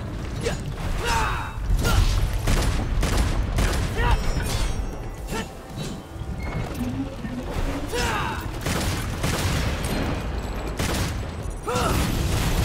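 A monster roars and screeches.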